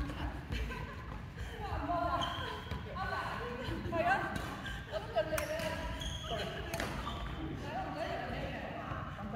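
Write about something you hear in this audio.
Men and women players call out and talk across the court.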